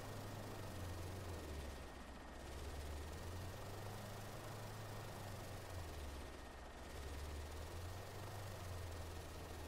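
A helicopter engine drones steadily with a low rotor hum.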